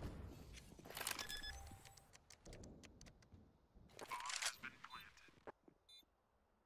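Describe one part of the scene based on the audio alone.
Electronic beeps sound as keys are pressed on a keypad.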